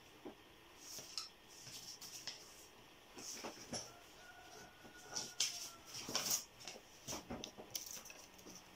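Loose paper sheets rustle as they are handled.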